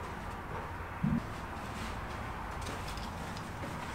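A large wooden board bumps and scrapes as it is carried.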